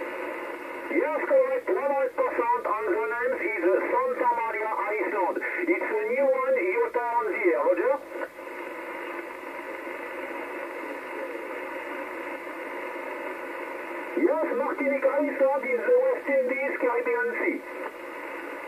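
A man speaks over a radio loudspeaker, thin and crackly through the static.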